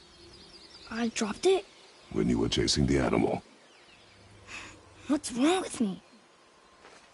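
A boy speaks calmly.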